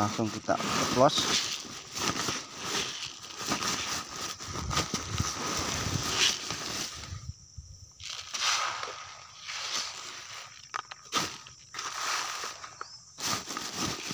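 Dry grains rattle and pour into a plastic sack.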